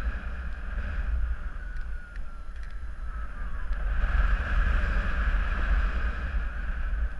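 Wind rushes and buffets loudly past the microphone.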